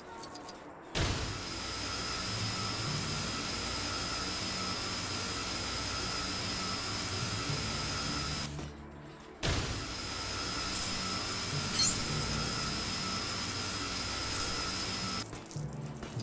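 A steady humming drone sounds while a golden statue is built.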